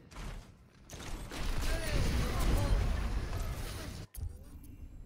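Gunfire and a roaring blast of flames burst loudly.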